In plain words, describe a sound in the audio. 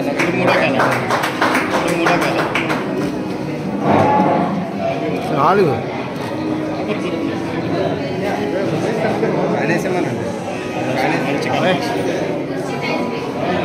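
A crowd of men and women chatter and talk over one another nearby.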